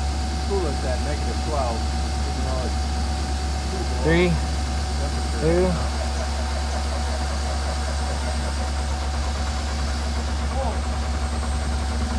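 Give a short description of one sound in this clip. An engine idles with a steady low hum.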